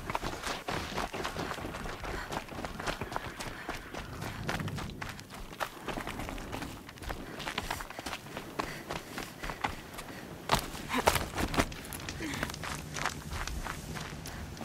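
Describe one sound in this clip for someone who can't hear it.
Footsteps crunch on dirt and gravel at a steady run.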